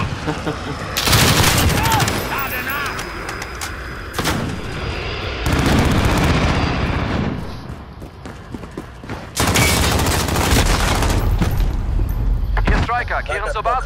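A rifle fires in loud bursts.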